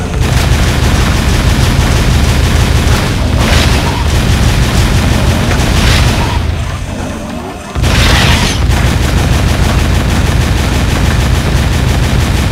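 A low engine drones steadily.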